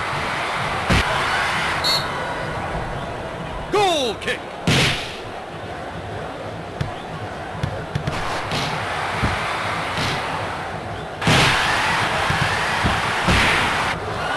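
A football is kicked with sharp thumps.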